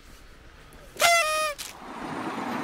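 Two women laugh close by.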